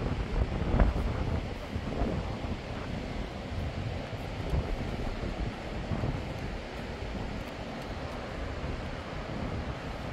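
A river rushes in a gorge below.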